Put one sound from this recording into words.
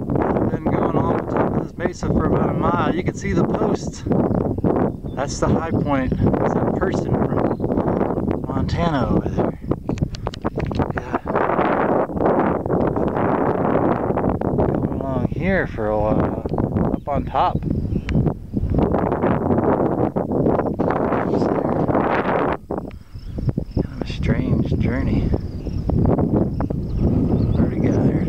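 Wind blows steadily across open country, buffeting the microphone.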